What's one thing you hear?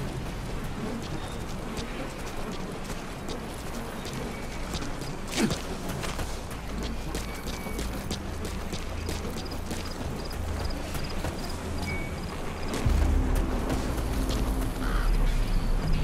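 Footsteps crunch quickly on dirt as a man runs.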